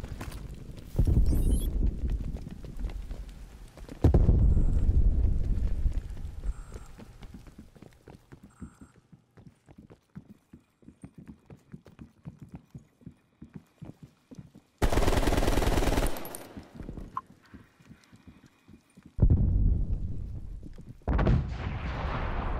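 Gunshots fire in loud rapid bursts.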